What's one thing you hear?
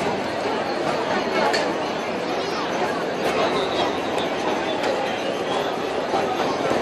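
A large outdoor crowd chatters in a steady murmur of many voices.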